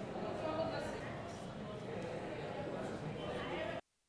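A teenage boy speaks aloud in a room.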